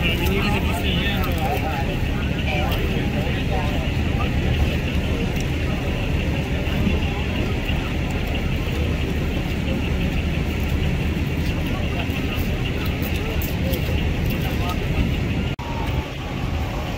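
A fire engine's motor idles with a steady low rumble.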